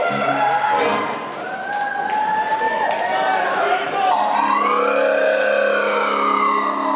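A man sings loudly into a microphone over amplified sound.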